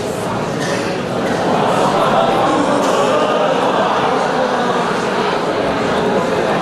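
A large audience chatters and cheers in an echoing hall.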